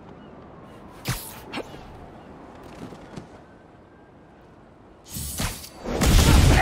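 A figure swings through the air with a rushing whoosh.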